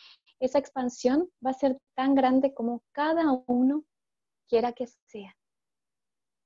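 A young woman talks calmly, heard close through an online call.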